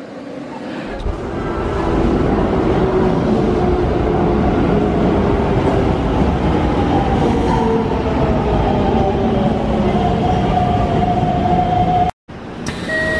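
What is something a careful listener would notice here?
A train rumbles into the station, growing louder.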